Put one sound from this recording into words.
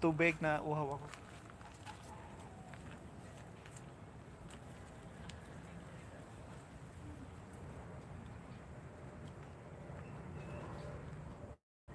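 Footsteps pass close by on a dirt path.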